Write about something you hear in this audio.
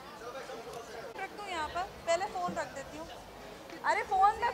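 A woman talks brightly into microphones nearby.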